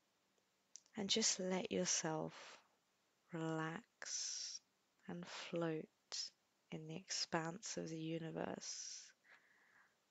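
A woman speaks calmly and warmly into a close microphone.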